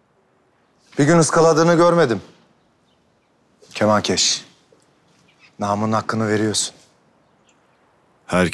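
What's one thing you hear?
A man speaks in a low, firm voice close by.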